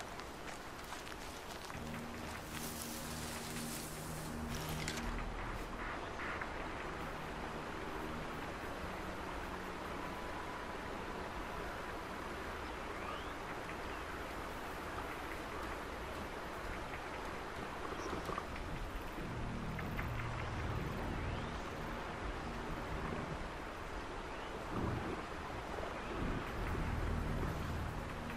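Tall grass rustles as someone creeps through it.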